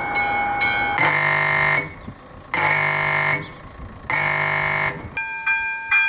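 A level crossing signal sounds loud, long electronic tones with short pauses.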